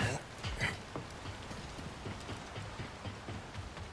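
Footsteps clatter on metal grating.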